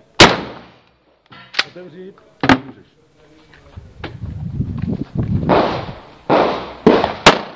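Gunshots bang loudly, one after another, outdoors.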